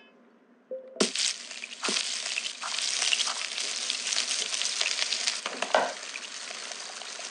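A shrimp sizzles in a hot frying pan.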